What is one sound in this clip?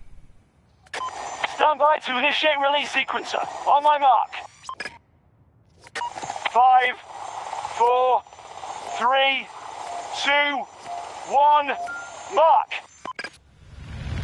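Short electronic tones chime one after another during a countdown.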